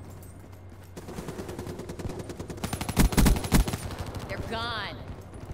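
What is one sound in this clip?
Rapid gunfire rattles in short bursts.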